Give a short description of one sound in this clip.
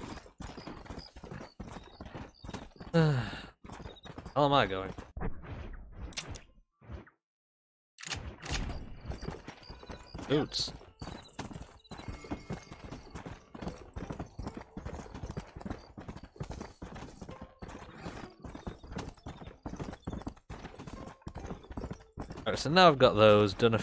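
Horse hooves gallop in a quick, steady rhythm over dirt.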